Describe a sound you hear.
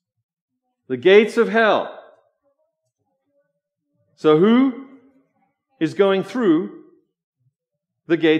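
A middle-aged man speaks calmly into a microphone in phrases separated by pauses.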